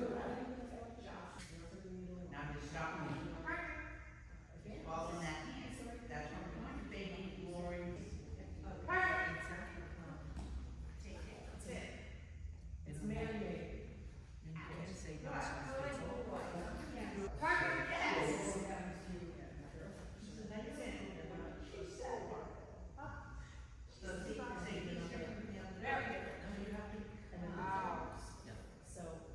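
A woman talks to a dog and gives it commands in a large echoing hall.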